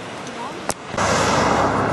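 A car engine hums close by.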